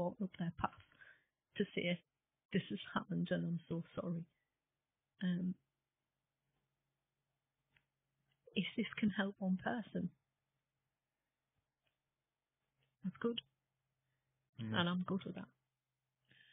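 A woman speaks calmly and close into a microphone, with pauses.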